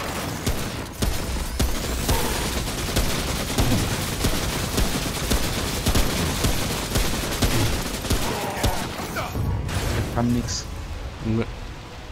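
Gunshots crack repeatedly.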